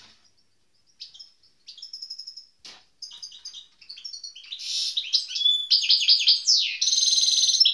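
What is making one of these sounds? A songbird sings close by in quick, chirping trills that grow louder and busier.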